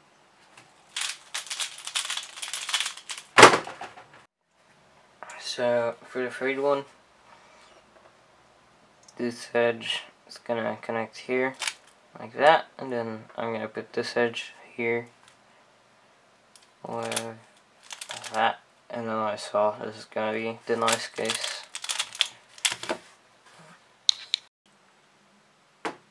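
A plastic puzzle cube clicks and clacks as it is twisted.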